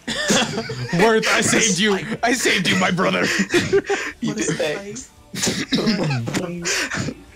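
A young man talks excitedly and laughs close to a microphone.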